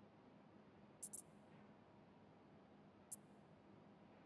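Short, bright game menu clicks sound twice.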